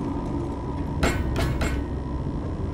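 A metal door clanks open.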